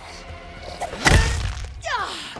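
A heavy blow strikes a body with a thud.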